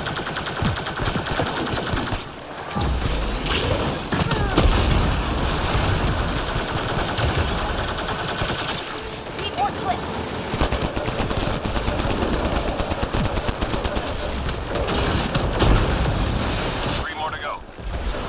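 Energy blasts whoosh and crackle with electric bursts.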